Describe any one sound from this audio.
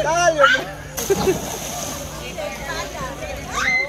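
Water splashes as someone jumps in.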